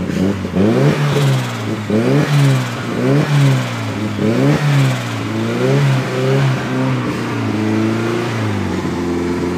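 A car engine revs up and down in quick, loud bursts.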